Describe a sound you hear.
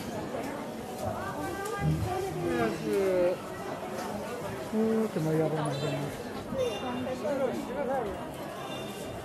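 People talk loudly nearby.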